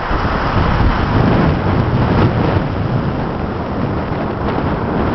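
Rough waves crash and roar onto a beach.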